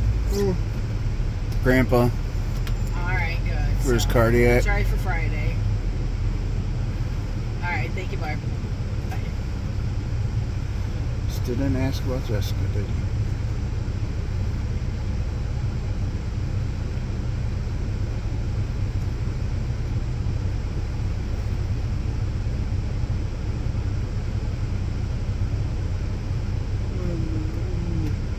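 A car engine hums steadily with a low rumble inside the cabin.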